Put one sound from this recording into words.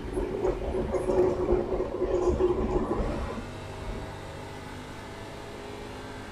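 A racing car engine drones steadily.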